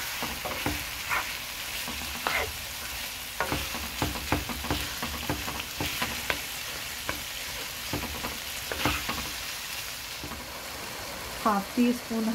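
Ground meat and onions sizzle in a hot pan.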